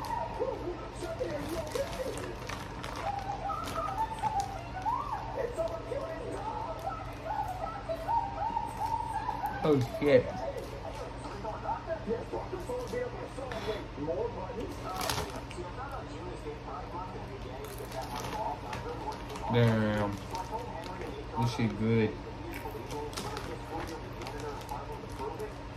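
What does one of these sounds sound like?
A crisp snack bag rustles and crinkles.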